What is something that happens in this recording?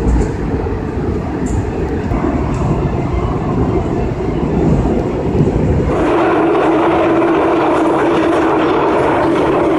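A subway train rumbles and roars steadily through a tunnel.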